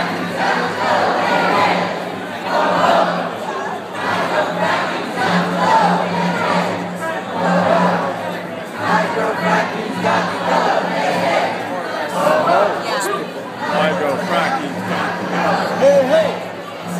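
A crowd of protesters chants loudly and rhythmically close by.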